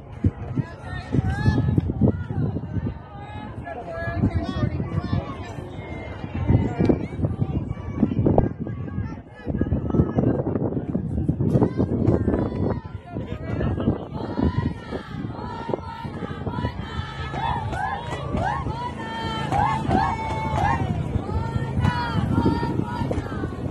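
Young women shout and cheer nearby outdoors.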